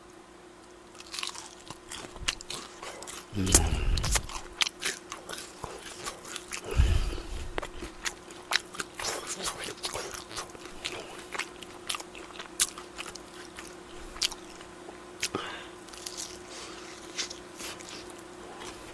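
A young man chews and smacks loudly close to a microphone.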